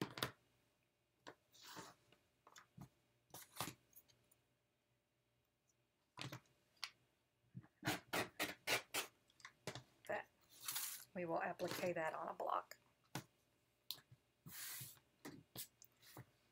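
Fabric rustles as it is handled on a table.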